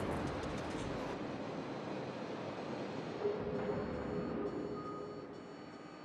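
Heavy naval guns fire with deep, rumbling booms.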